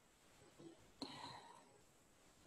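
A paintbrush dabs softly on paper.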